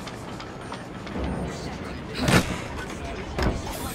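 A wooden crate lid creaks open and thumps.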